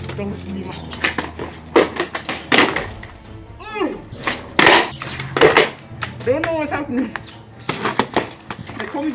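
A skateboard clatters and slaps on concrete.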